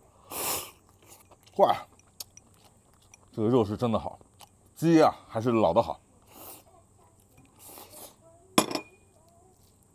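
A young man slurps soup from a bowl.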